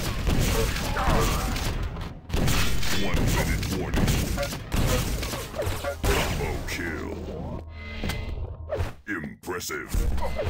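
Rockets explode with heavy booms.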